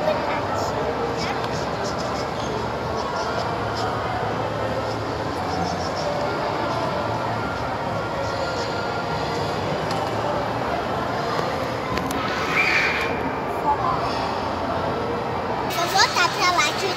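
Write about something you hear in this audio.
Children and adults chatter in the background of a busy, echoing room.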